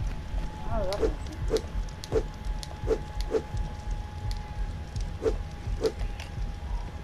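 Short soft clicks sound one after another.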